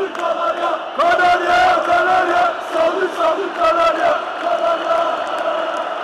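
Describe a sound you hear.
Fans clap their hands in rhythm.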